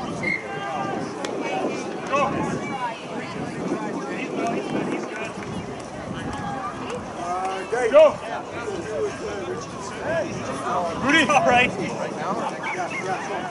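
Young women shout and call out to one another outdoors.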